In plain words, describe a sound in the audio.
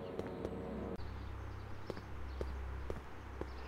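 Footsteps tap on pavement at a walking pace.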